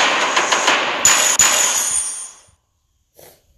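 A short victory jingle plays with bright chimes as stars pop in.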